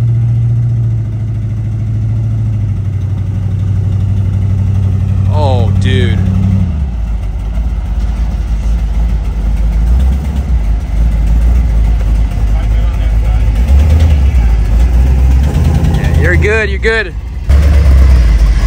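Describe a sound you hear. A vehicle engine rumbles as it drives slowly closer.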